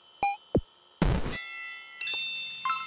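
A harsh electronic buzz sounds as the game ends.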